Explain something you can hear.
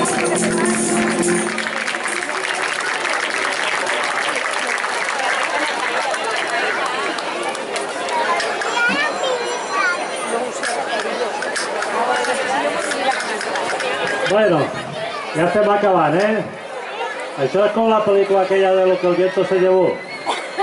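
A large crowd chatters outdoors.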